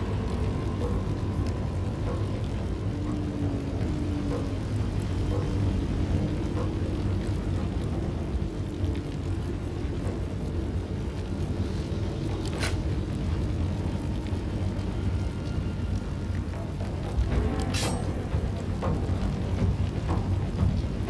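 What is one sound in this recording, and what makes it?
A fire roars steadily.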